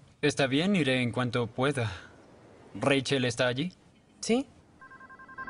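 A young man speaks into a phone with emotion, close by.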